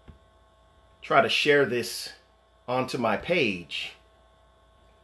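A man speaks calmly and closely into a microphone, in short phrases.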